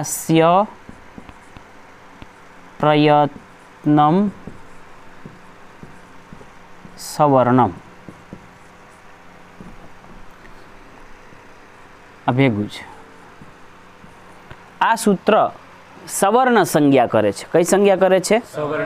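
A man speaks in short, spaced phrases, close by, like a teacher.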